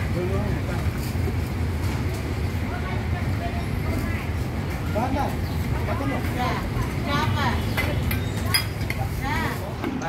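A metal ladle clinks and scrapes inside a pot.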